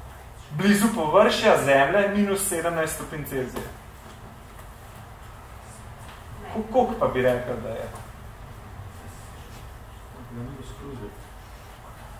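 A young man speaks calmly, with pauses.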